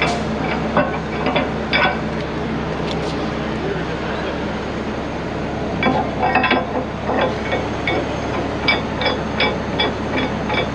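Metal chain links and shackles clank against each other.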